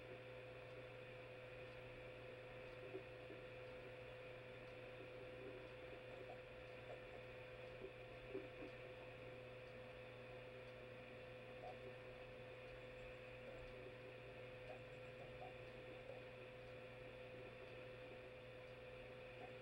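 A small television speaker plays tinny game music with a steady hum.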